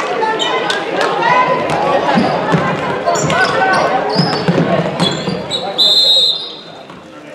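A crowd cheers and shouts loudly in an echoing gym.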